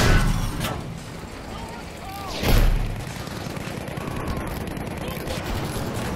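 A tank engine rumbles and its tracks clank.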